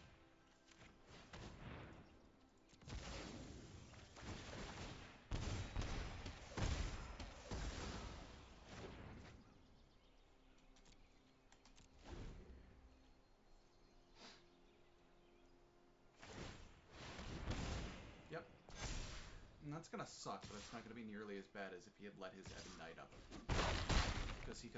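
Magical whooshing effects sweep and crackle in bursts.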